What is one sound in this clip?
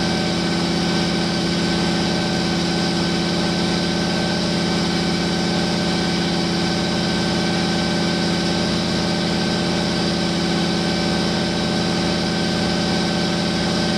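A truck engine idles loudly and steadily with a rough, lumpy rumble.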